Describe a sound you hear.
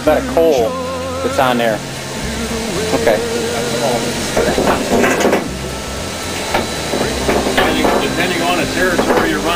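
A steam locomotive engine rumbles and chugs steadily.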